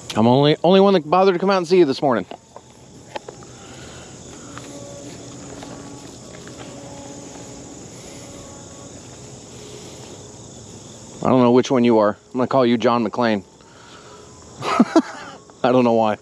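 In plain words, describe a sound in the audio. A bison tears and chews grass close by.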